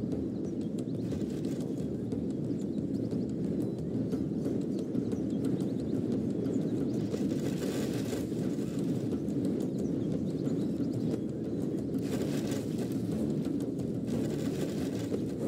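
The tramp of massed marching troops rumbles.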